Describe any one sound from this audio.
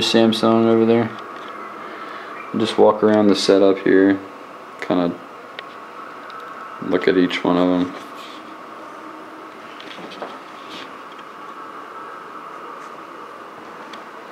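Video game sounds play quietly from a television speaker.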